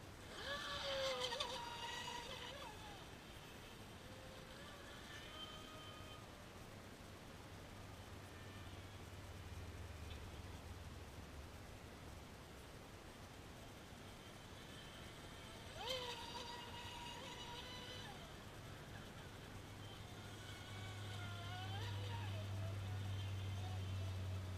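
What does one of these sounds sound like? A model speedboat's electric motor whines loudly, rising and falling in pitch as it races past.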